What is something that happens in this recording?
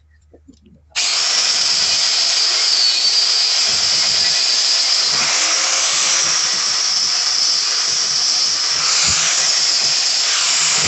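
An angle grinder whines loudly as it grinds and polishes a metal pipe.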